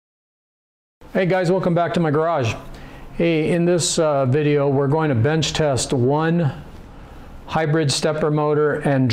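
An older man talks calmly and close up into a clip-on microphone.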